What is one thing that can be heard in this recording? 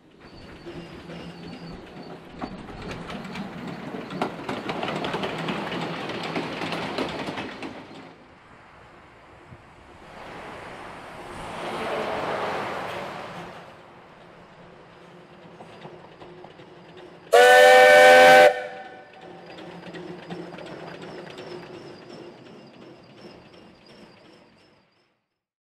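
A steam locomotive chuffs and rumbles along the track.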